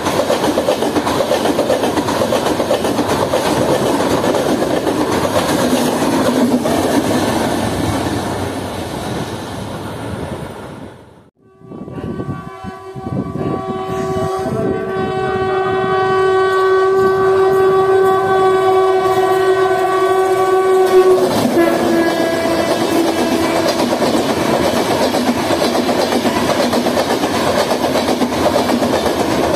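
A passenger train rattles past close by on the tracks.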